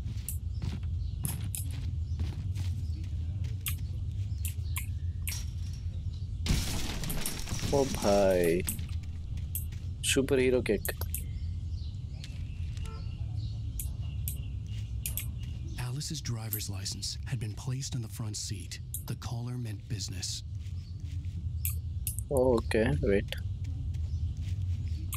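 Footsteps rustle through tall grass and weeds.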